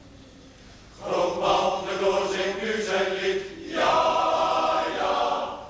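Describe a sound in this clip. A large male choir sings together in an echoing hall.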